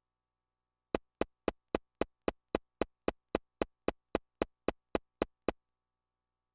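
Short electronic beeps tick rapidly and evenly.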